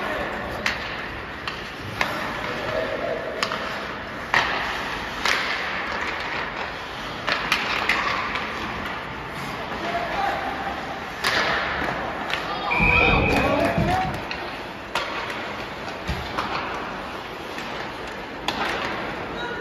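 Hockey sticks click and slap against the puck.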